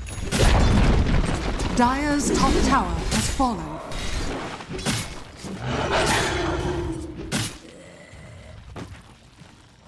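Magic spells crackle and burst in a video game battle.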